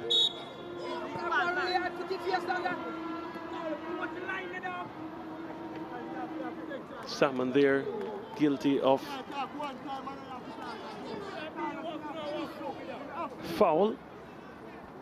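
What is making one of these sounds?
Young men shout to each other across an open playing field.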